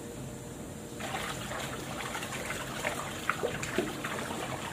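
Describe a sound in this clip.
Hands scrub and splash in water.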